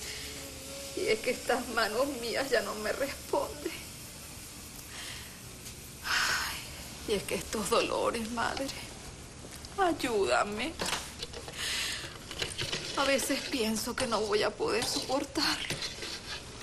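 A woman answers calmly nearby.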